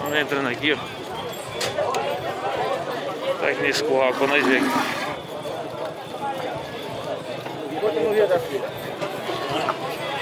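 Men talk and call out nearby, outdoors.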